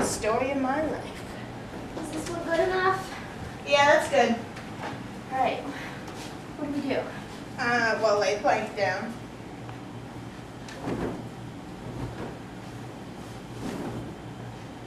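Young women talk and laugh excitedly nearby.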